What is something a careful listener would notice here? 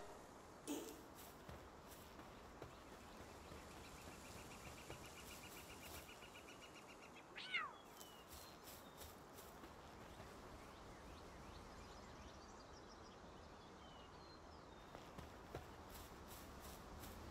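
Footsteps pad softly on grass.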